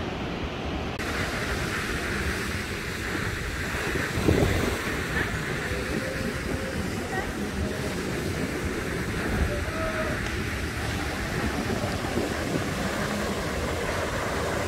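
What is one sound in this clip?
Waves break and wash over rocks nearby.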